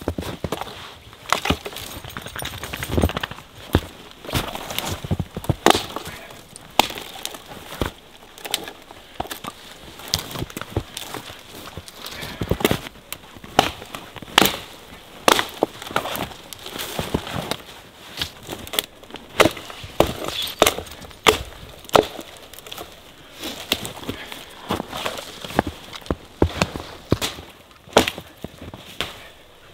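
Branches rustle and snap.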